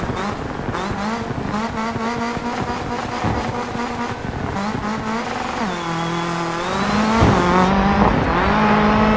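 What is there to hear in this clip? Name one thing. Tyres crunch and skid on snow.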